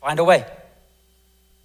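A man speaks briefly into a microphone, heard through a loudspeaker in a large room.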